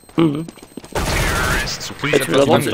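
Rapid gunfire bursts out briefly.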